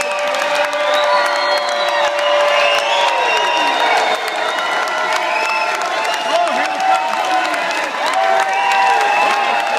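A crowd claps steadily.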